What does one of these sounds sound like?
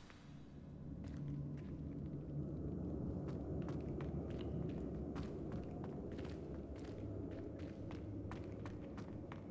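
Footsteps tap on a stone floor in an echoing hall.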